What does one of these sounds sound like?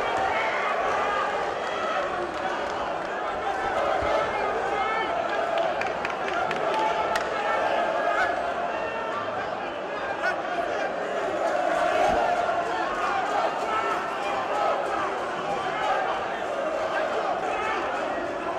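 A large crowd cheers and shouts steadily in an echoing hall.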